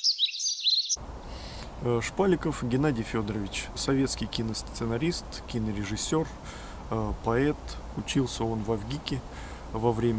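A man speaks calmly and close by.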